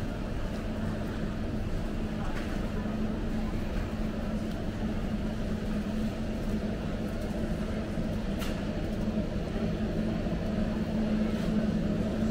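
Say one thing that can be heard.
Refrigerated display cases hum steadily in a large, echoing hall.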